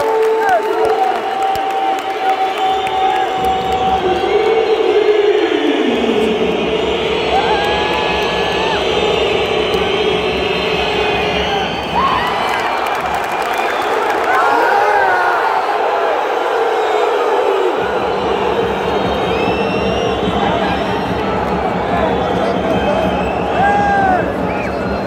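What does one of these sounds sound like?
Basketball sneakers squeak sharply on the court.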